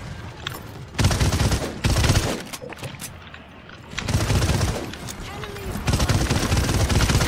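Rapid gunfire bursts out loudly in short volleys.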